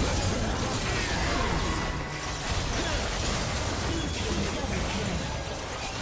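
Video game combat effects crackle and boom in a fast, busy fight.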